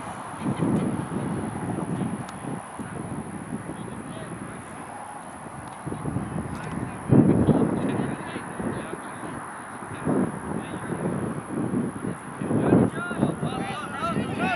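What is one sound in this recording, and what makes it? Young men and women shout and call to each other from across an open field.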